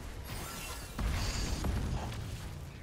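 Fiery explosions boom and rumble.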